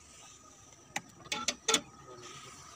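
A metal lever clunks.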